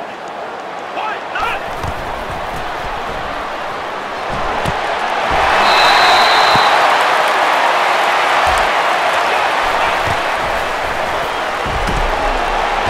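A large stadium crowd roars steadily, swelling louder partway through.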